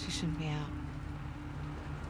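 A young woman speaks quietly and worriedly.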